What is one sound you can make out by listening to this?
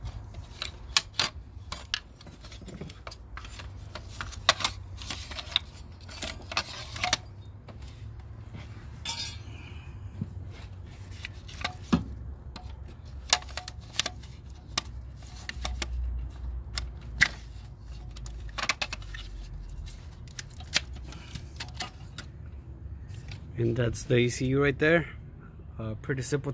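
Plastic parts click and knock close by.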